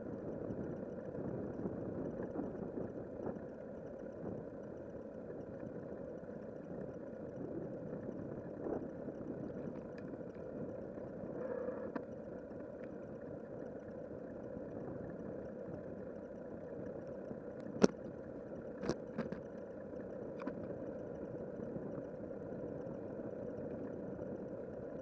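Bicycle tyres roll steadily over a paved path.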